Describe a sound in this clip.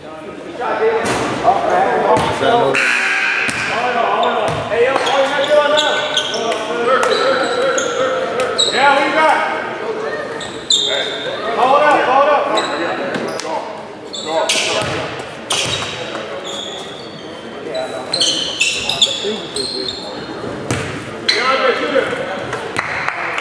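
A basketball thumps on the court as it is dribbled.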